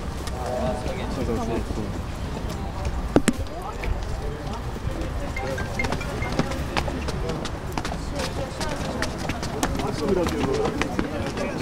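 A crowd of men and women talks and calls out nearby, outdoors.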